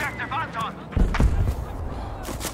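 Gunshots crack loudly in quick succession.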